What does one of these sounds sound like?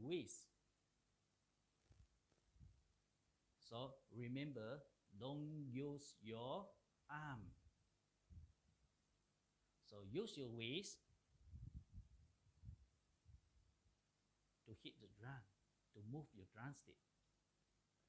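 A man talks calmly and clearly into a microphone.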